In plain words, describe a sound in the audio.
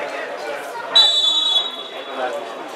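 A referee's whistle blows once, sharp and short.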